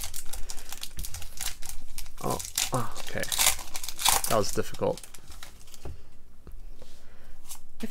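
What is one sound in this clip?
Foil wrapping crinkles and rustles close by as it is torn open.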